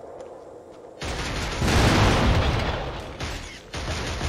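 A loud explosion booms and rumbles, then fades.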